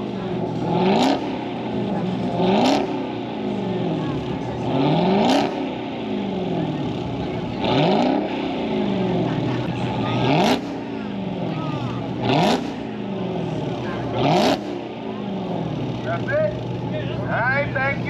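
A car engine revs hard again and again, with a rumbling idle in between.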